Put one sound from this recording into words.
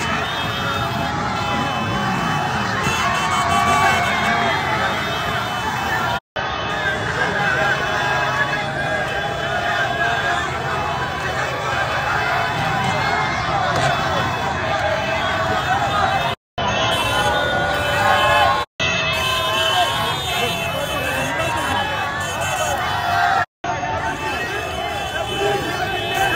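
A large crowd shouts and sings loudly outdoors.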